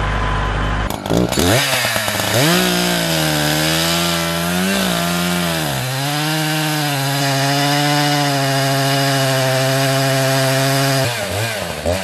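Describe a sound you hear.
A chainsaw revs up and cuts through a log with a loud, wavering whine.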